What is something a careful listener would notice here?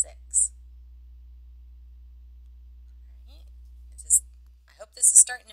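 A woman speaks calmly and close to a microphone, with pauses.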